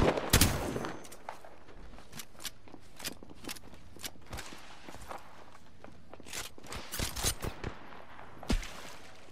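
Footsteps tap quickly on hard ground.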